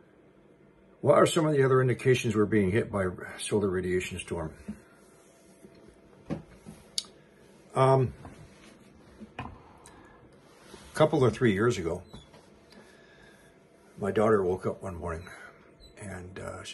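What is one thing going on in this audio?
An elderly man speaks calmly and close by, in short bursts with pauses.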